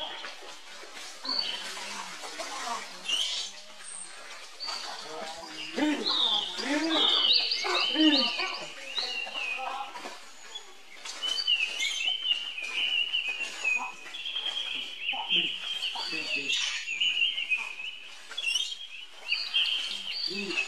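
Dry leaves rustle as monkeys scramble over them.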